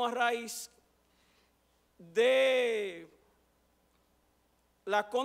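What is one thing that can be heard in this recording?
A middle-aged man speaks calmly and deliberately into a microphone, with pauses between phrases.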